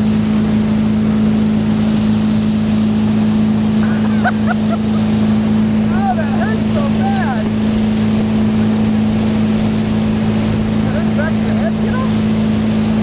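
A boat engine drones steadily at close range.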